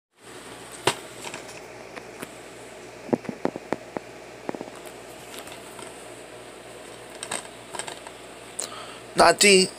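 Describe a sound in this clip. A plastic case clicks and rattles as hands handle it.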